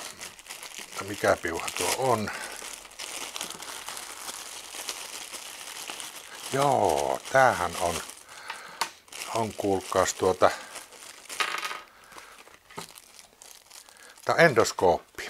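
A plastic bag crinkles as hands handle and open it.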